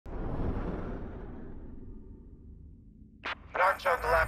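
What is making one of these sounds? A spacecraft's engines roar past and fade away.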